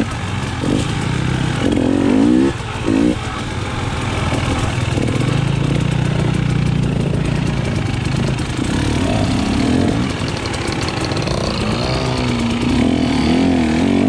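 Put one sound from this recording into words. Another dirt bike engine buzzes a short way ahead.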